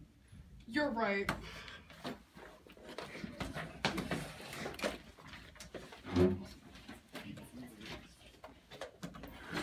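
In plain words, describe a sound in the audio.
Chairs scrape and footsteps shuffle.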